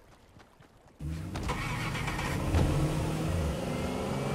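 A vehicle engine starts up and hums with a low, steady drone.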